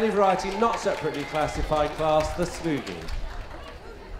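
A small crowd claps along.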